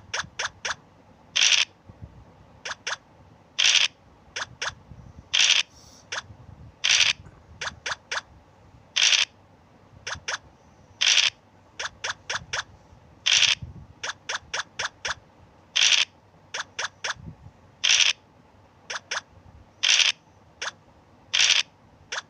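Game pieces tap in quick runs of short clicks as they hop along.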